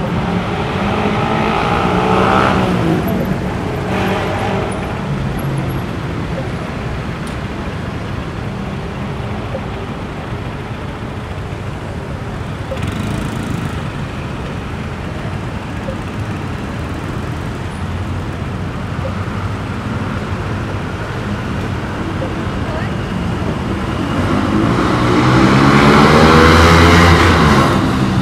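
Motorbike engines rev and buzz close by.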